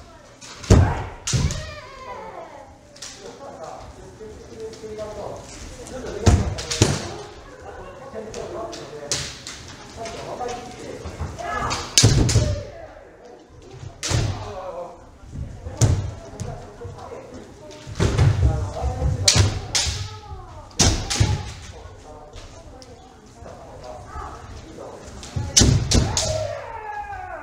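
Bamboo swords clack and strike sharply, echoing around a large hall.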